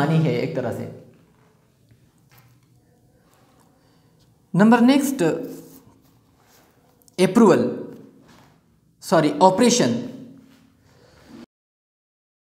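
A man speaks calmly in short phrases, with pauses between them.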